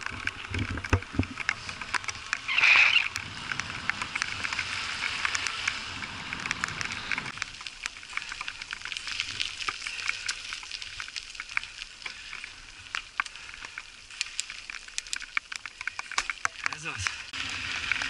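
Bicycle tyres rattle and splash over a wet, bumpy track.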